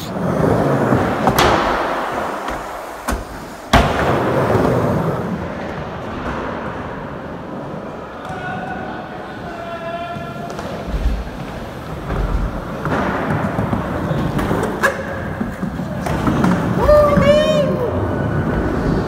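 Skateboard wheels roll and rumble over a wooden ramp.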